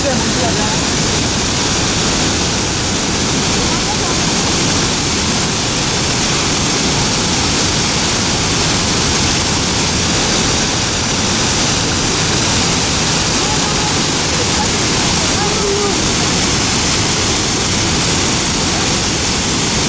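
A waterfall roars loudly and steadily close by.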